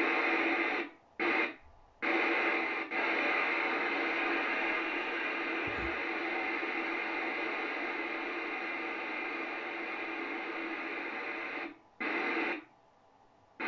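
Static hisses loudly from a radio loudspeaker, cutting in and out as the radio is tuned.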